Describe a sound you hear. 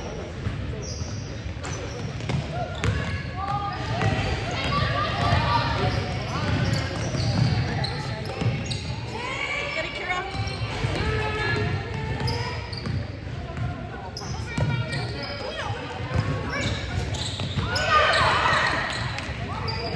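Spectators in the stands cheer and call out, echoing in a large hall.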